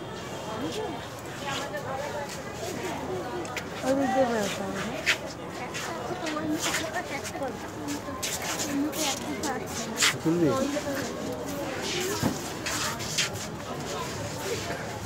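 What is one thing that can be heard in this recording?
Men talk and chatter nearby.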